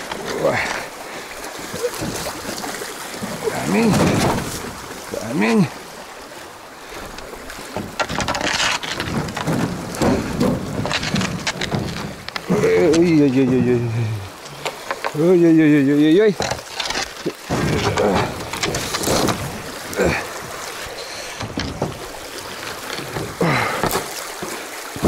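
Water rushes and gurgles along a shallow stream.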